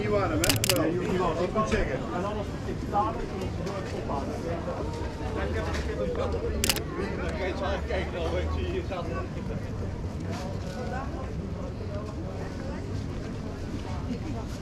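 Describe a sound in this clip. Footsteps pass by on pavement.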